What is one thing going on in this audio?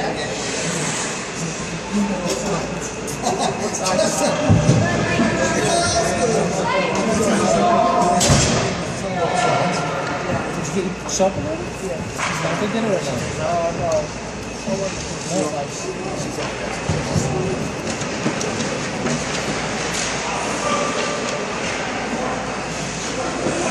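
Ice skates scrape and glide across the ice.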